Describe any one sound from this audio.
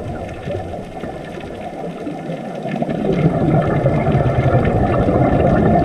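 Scuba divers' breathing gear releases bubbles that gurgle and rumble underwater.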